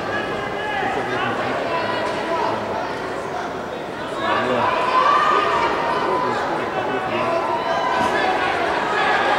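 A man calls out loudly in a large echoing hall.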